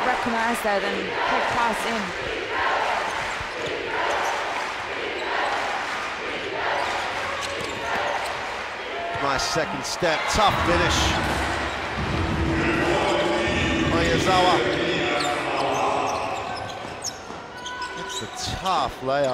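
A crowd cheers and chants in a large echoing arena.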